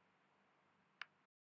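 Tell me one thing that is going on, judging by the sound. A small plastic toy taps against a hard surface with a click.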